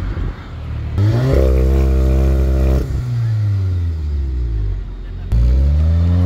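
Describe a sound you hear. A car engine revs hard, its exhaust roaring and then dropping back.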